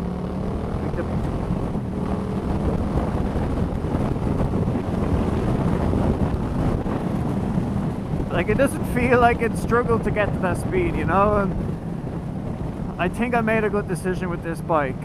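Wind rushes past a motorcycle rider.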